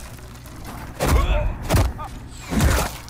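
Debris explodes and scatters with loud bangs.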